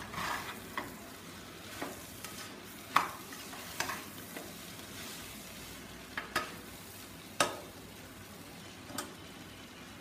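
A metal spoon stirs rice and clinks against an aluminium pressure cooker.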